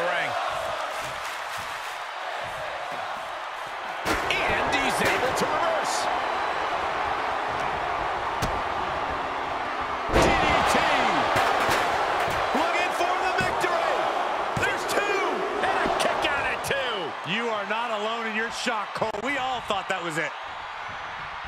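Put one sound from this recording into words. A large arena crowd roars and cheers.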